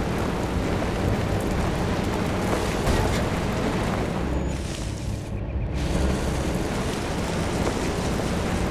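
A car engine rumbles steadily while driving over rough ground.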